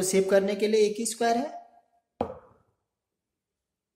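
A chess piece is set down on a board with a light knock.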